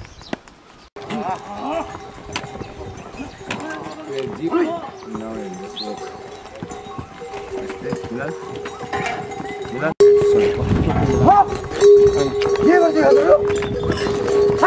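Bells on pack mules jingle.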